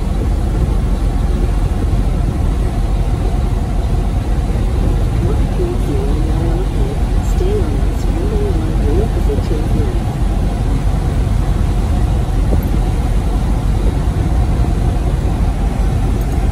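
A truck engine hums steadily as the vehicle drives.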